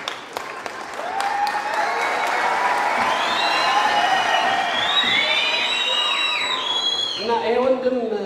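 Women in a crowd ululate and cheer loudly.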